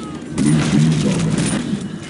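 Gunfire cracks in a video game.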